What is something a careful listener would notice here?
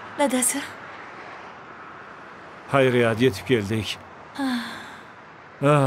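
A young woman talks nearby in a calm voice.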